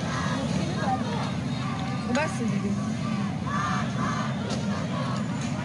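A crowd shouts and chants outdoors.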